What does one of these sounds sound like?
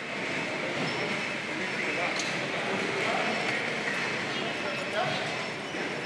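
Cart wheels rumble across a hard floor.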